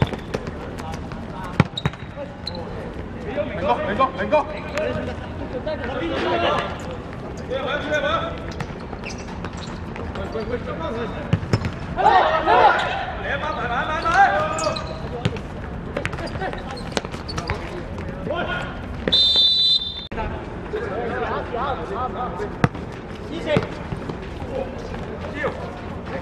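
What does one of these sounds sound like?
A football is kicked on a hard court.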